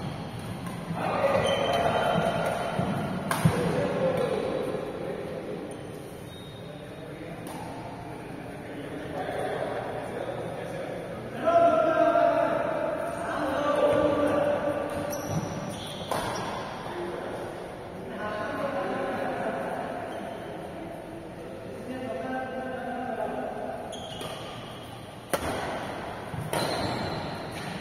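Adult men call out and talk across a large echoing hall.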